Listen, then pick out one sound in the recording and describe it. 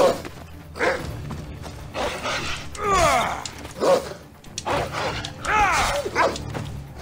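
Footsteps rustle quickly through dry grass.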